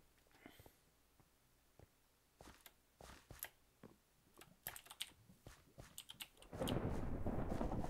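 Footsteps tap softly on gravel.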